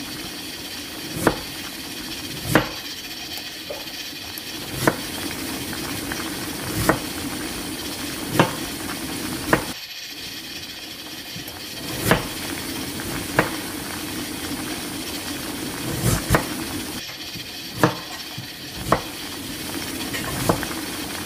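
Water boils hard, bubbling and churning steadily in a pot.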